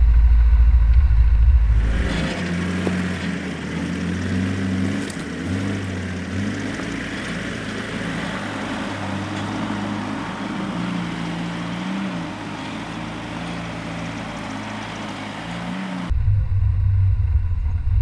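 A vehicle engine rumbles close by as it crawls over rough ground.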